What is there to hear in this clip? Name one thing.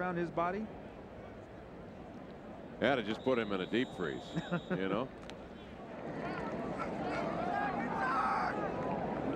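A large stadium crowd murmurs and swells into a loud roar.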